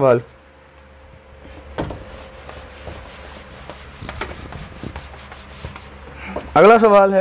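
A cloth wipes across a whiteboard with a soft rubbing sound.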